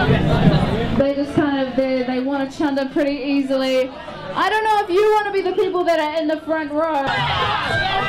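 A young woman talks into a microphone through loudspeakers outdoors.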